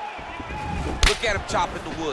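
A heavy kick lands with a sharp thud.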